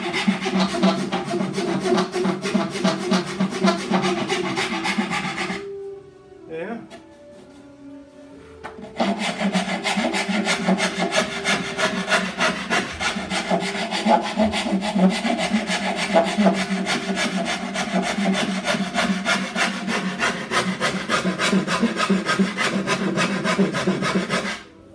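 A gouge scrapes and shaves wood in quick, rasping strokes.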